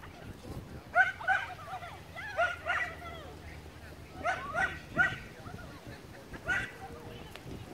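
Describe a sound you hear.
A woman calls out commands to a dog in the open air.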